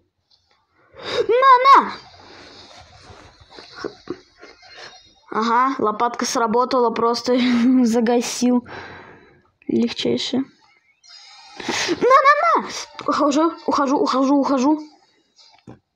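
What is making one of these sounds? A young boy talks with animation close to a microphone.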